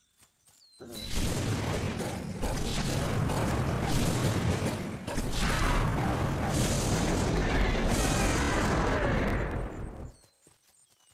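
A dragon's fiery breath roars and rumbles loudly.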